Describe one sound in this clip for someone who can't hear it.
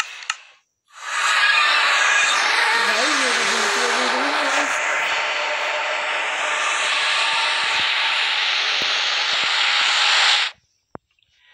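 A game portal gives off a loud, steady rushing whoosh.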